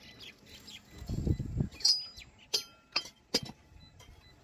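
A metal lid clanks against metal.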